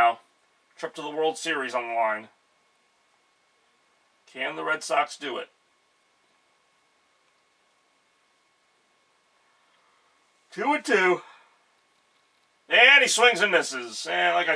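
A man talks close by in short bursts with pauses between them.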